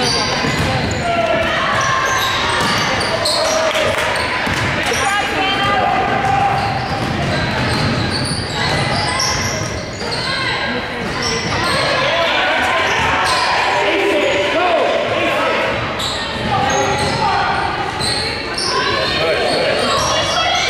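A ball bounces on a hardwood court.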